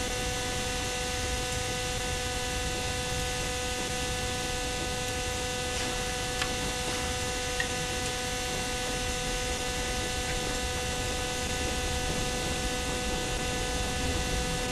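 A steam locomotive rumbles and hums steadily while rolling slowly.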